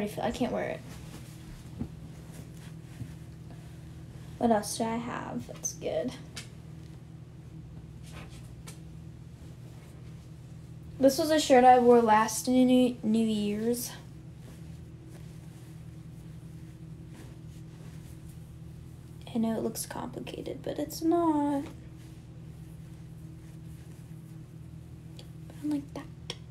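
A young woman talks casually close by, in short bursts.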